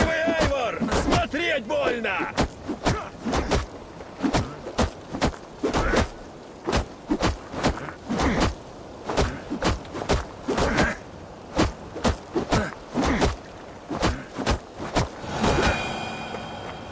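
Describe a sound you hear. A man grunts and shouts as he fights.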